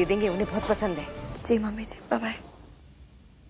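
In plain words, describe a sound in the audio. A woman speaks with animation on a phone, close by.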